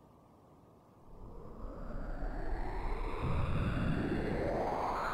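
A magic spell swells with a rising, rumbling whoosh.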